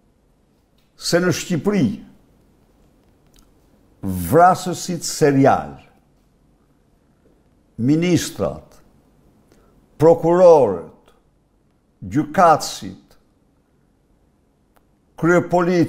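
An elderly man speaks forcefully into a microphone in short bursts with pauses.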